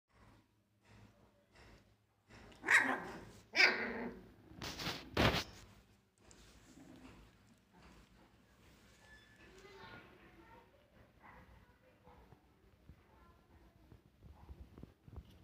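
Puppies scuffle and scratch on a soft blanket.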